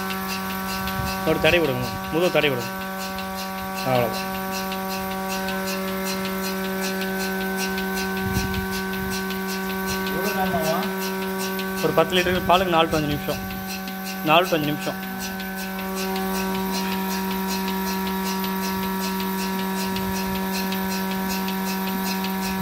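A milking machine pulsator clicks in a fast, even rhythm.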